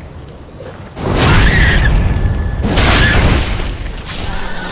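A large creature attacks with heavy, roaring crashes.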